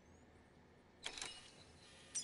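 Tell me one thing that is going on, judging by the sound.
Electronic interface beeps sound.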